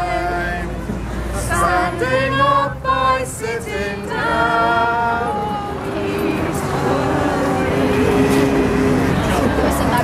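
Two women chant loudly together, close by.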